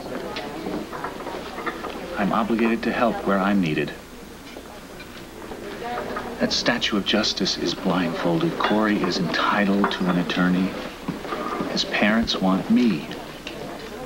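A man speaks calmly and seriously nearby.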